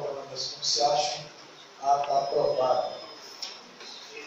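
A man speaks into a microphone in a room with echo.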